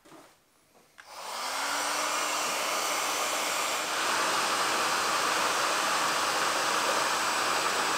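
A heat gun blows with a steady, loud roar.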